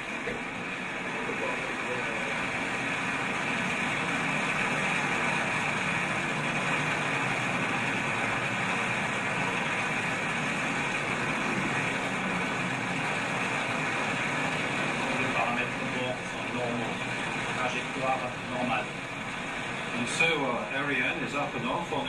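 A rocket engine roars steadily in the distance.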